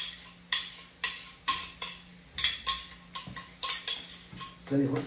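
A spoon clinks rapidly against a glass.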